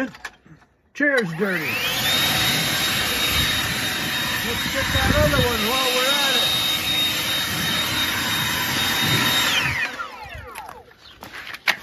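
A cordless leaf blower spins up to full speed with a high whine and blasts air, then winds down.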